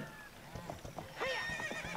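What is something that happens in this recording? A horse's hooves gallop over the ground.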